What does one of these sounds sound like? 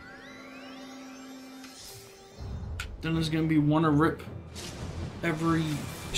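Game spell effects whoosh and chime.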